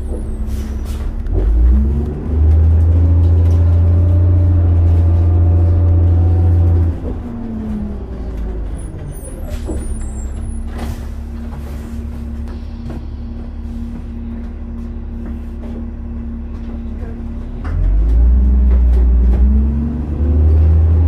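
A vehicle engine hums steadily from inside, rising and falling as it speeds up and slows down.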